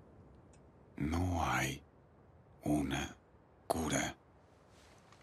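A man speaks in a low, calm voice, close by.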